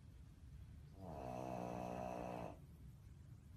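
A small dog lets out a long whine.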